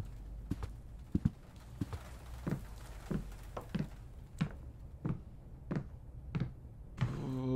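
Footsteps thud slowly and evenly on a wooden floor.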